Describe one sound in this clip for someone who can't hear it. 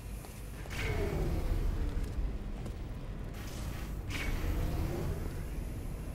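A lift whooshes with a sweeping tone.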